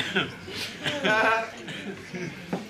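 Men laugh loudly together.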